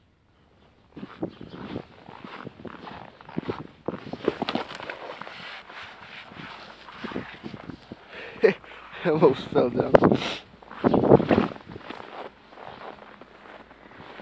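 Boots crunch and squeak on packed snow with each step.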